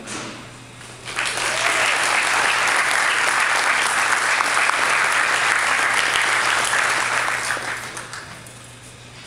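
A group of people applaud loudly.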